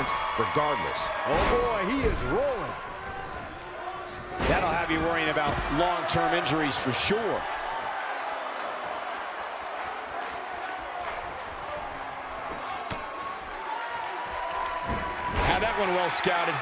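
Bodies slam heavily onto a wrestling ring's canvas.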